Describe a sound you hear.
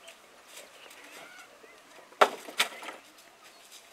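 Wood knocks sharply against a wall.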